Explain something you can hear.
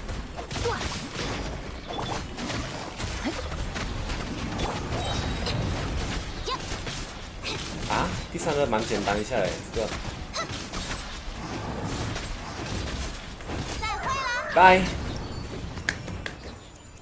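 Fast battle effects crash and whoosh with booming hits.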